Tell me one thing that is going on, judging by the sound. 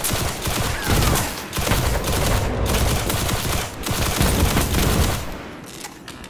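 An electric gun fires in rapid, loud crackling bursts.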